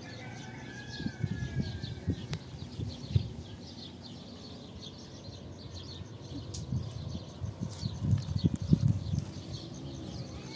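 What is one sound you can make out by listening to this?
Wind buffets outdoors.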